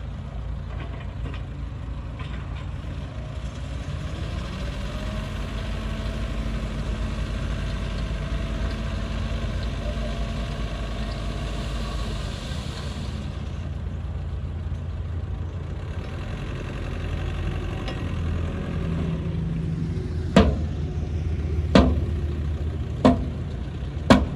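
A truck's diesel engine rumbles steadily close by.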